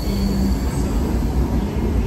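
Footsteps pass close by.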